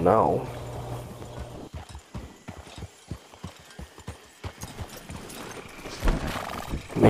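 Horse hooves clop slowly on soft ground.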